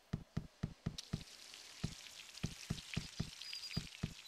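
A fountain splashes and trickles.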